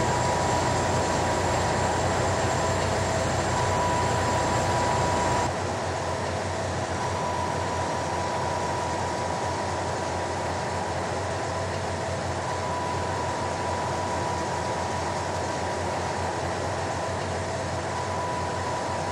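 A heavy truck engine drones steadily as it drives along.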